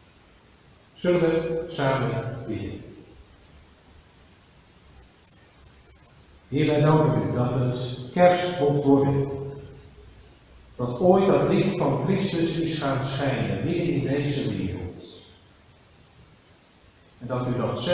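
A middle-aged man speaks calmly into a microphone in a softly echoing room.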